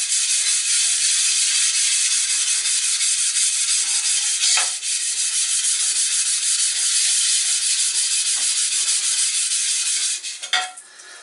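A sharpening stone rasps rapidly back and forth over a metal plate.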